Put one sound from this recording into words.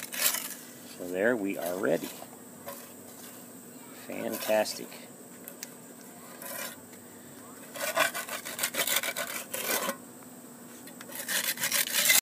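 A metal trowel scrapes and spreads wet mortar on a concrete block.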